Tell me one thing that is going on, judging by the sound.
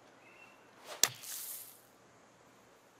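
A golf club strikes sand with a sharp thump and a hissing spray.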